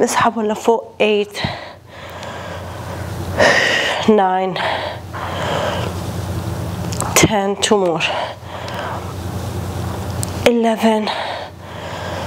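A young woman speaks in short bursts nearby.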